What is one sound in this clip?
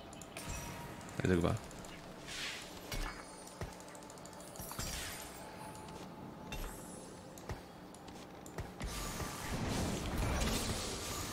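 Game battle effects clash and whoosh.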